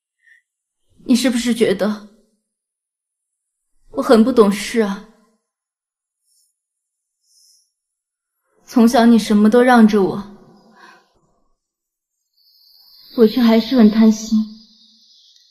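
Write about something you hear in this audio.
A young woman speaks softly and sadly, close by.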